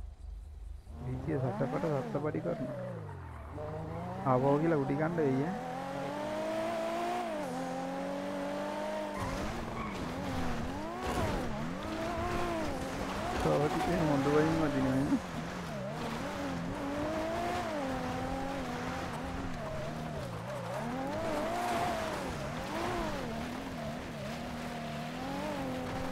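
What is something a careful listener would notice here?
A car engine revs hard, rising and falling in pitch as gears change.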